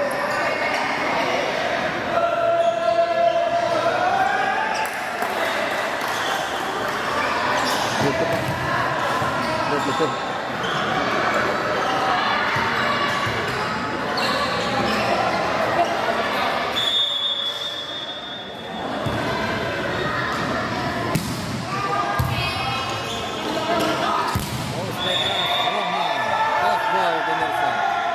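A crowd cheers and chants loudly in an echoing hall.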